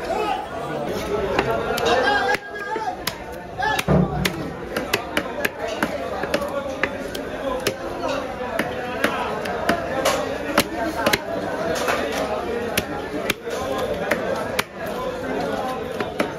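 A knife taps sharply against a fish's skin.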